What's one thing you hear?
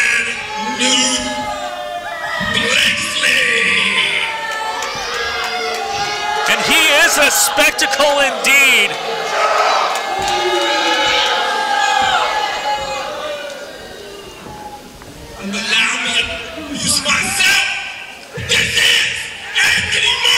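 A man shouts with animation into a microphone, heard through loudspeakers in an echoing hall.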